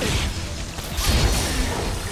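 A blade slices with a sharp swish.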